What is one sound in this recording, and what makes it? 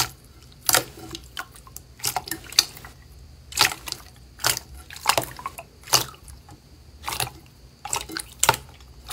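Hands squish and squelch wet slime, with sticky popping sounds.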